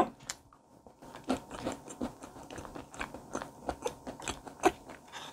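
A young woman chews food noisily and wetly up close.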